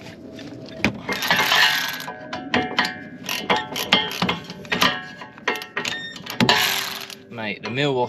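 A cordless ratchet whirs in short bursts.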